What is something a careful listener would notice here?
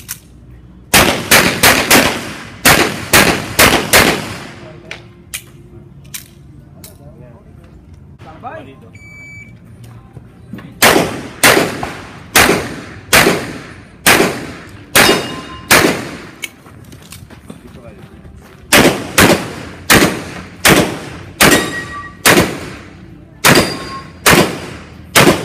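A pistol fires rapid shots outdoors.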